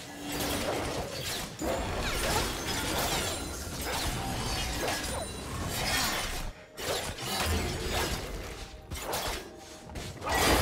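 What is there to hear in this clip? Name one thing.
Game spell effects whoosh and crackle during a fast fight.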